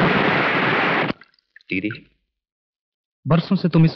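Water trickles as it is poured from a small pot.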